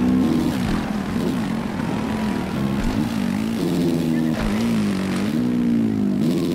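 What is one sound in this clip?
A dirt bike engine revs up and down loudly as it races.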